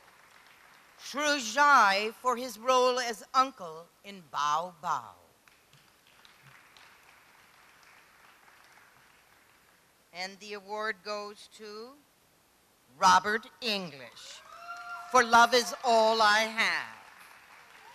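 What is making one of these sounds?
A woman speaks into a microphone over a loudspeaker in a large echoing hall, reading out.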